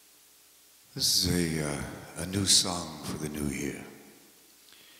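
An older man speaks into a microphone close by.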